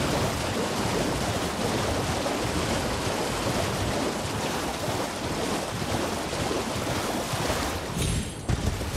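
Water splashes steadily under quick running footsteps.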